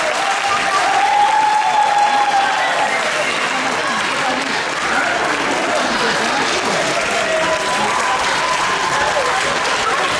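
Young children sing together.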